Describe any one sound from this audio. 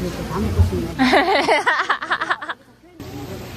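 Young women laugh loudly.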